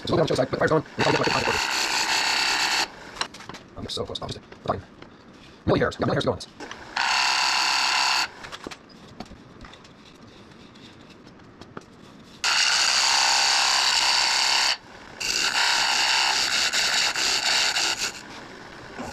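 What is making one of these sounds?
A lathe gouge cuts into spinning wood with a loud, rasping whine.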